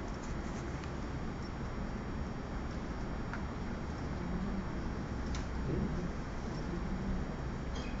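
A brush lightly brushes and taps on paper.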